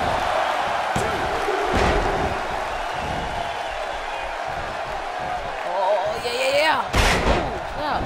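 Bodies slam hard onto a wrestling ring mat.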